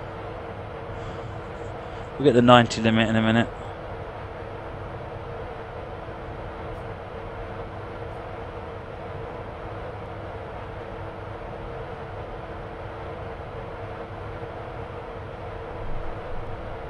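A train's electric motors hum steadily as it runs along the track.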